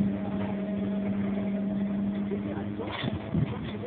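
A truck engine hums steadily, then stops.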